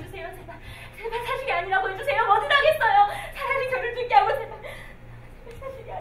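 A young woman speaks with emotion, heard through a microphone in a hall.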